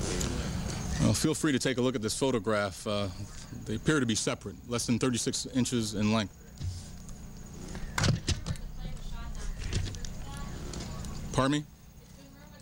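A man speaks calmly into microphones outdoors.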